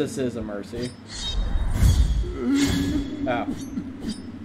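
A sword swings with a whooshing slash.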